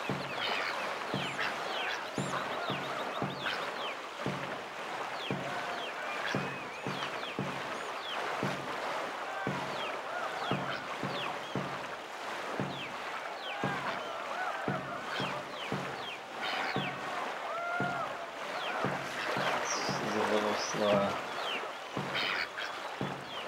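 Water rushes and churns around a moving canoe.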